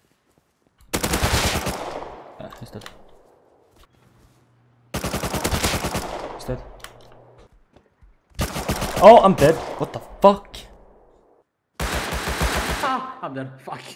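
A gun fires rapidly in short bursts.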